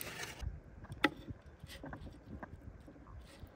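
Metal tongs clack on a wooden board.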